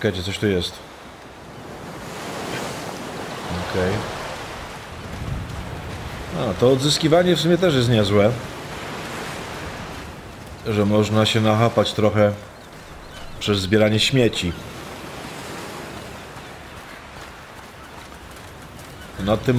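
Waves wash softly against a rocky shore.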